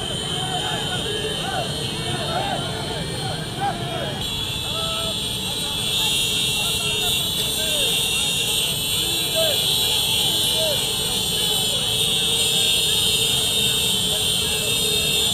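A crowd of people outdoors cheers and shouts.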